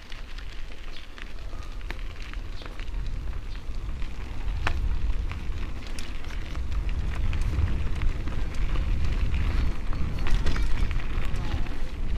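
Wind rumbles against the microphone outdoors, growing stronger.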